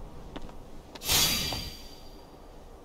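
A magical burst of light flares with a bright chime.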